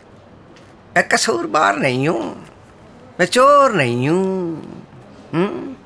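An elderly man speaks with animation close by.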